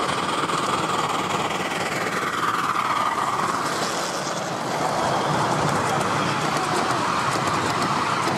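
A small steam locomotive chuffs and hisses as it passes close by.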